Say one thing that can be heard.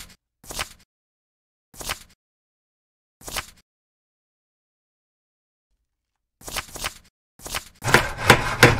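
Menu selections click.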